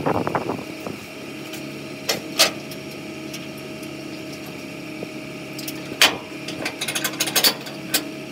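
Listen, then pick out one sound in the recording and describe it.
Metal parts clank and knock sharply close by.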